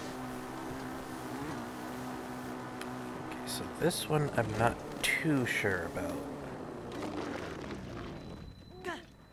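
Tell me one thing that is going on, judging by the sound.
A motorcycle engine hums steadily and revs up and down.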